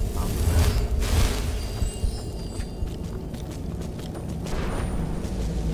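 A magical spell shimmers and whooshes.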